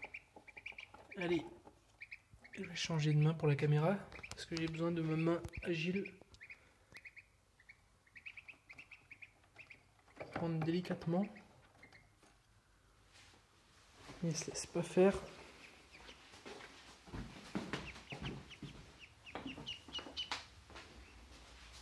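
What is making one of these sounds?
A duckling cheeps softly, close by.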